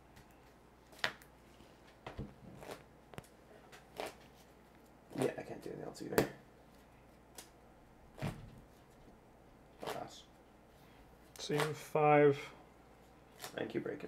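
Playing cards tap and shuffle in someone's hands.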